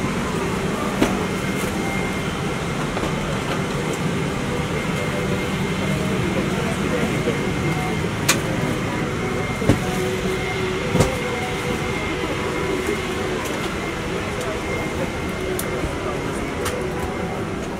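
Bags and footsteps thump softly as people move down an aisle.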